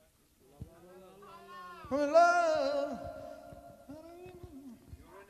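A man sings a sustained melody.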